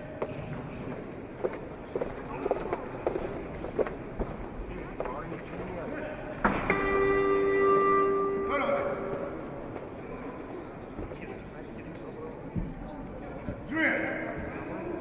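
A crowd murmurs in a large echoing hall.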